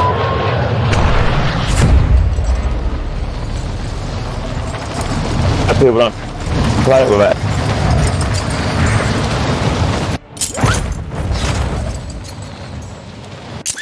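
Wind rushes loudly past a skydiver in freefall.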